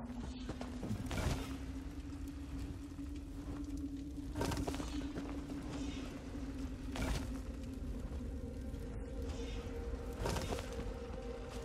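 A heavy stone slab scrapes with a short whoosh, several times.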